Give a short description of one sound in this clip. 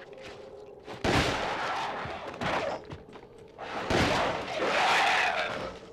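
A shotgun fires loudly, booming and echoing.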